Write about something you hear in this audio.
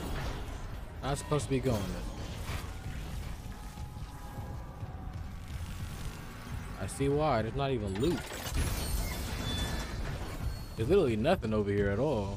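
A young man talks with animation, close to a headset microphone.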